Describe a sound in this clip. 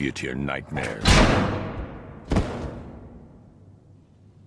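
A heavy metal door slams shut and rings out.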